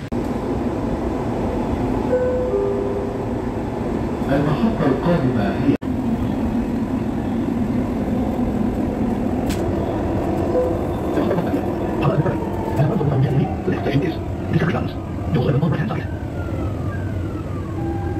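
A train rumbles steadily along an elevated track.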